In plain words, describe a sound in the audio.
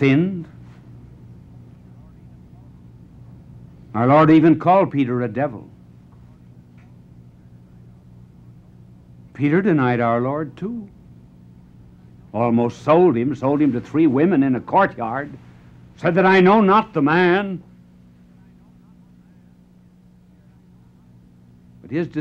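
An elderly man speaks slowly and dramatically into a microphone, with long pauses.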